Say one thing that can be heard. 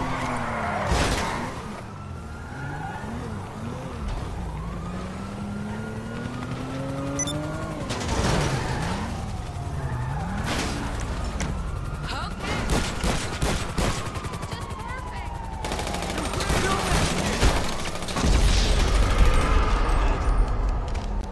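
Gunshots crack sharply several times.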